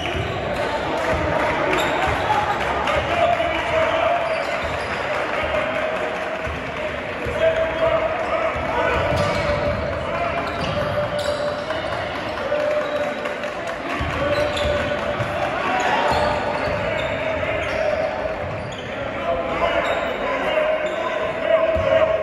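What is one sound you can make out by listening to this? Sneakers squeak on the court in a large echoing gym.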